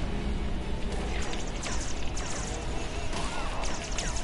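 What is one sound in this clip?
Energy weapons fire in quick zapping bursts.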